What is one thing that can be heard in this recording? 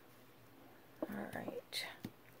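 Paper rustles and crinkles as hands press it down.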